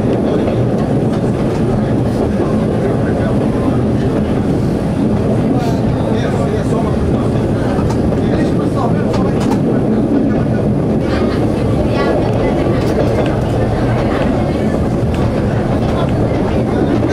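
A train engine rumbles steadily as the train rolls along the track.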